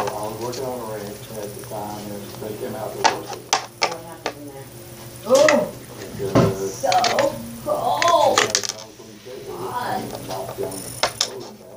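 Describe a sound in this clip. A small plastic toy taps and clicks against a hard surface.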